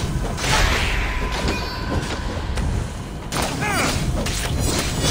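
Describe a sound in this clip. Blows strike and clash in a fight.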